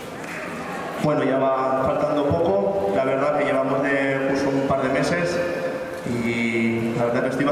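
A young man sings into a microphone, amplified through loudspeakers outdoors.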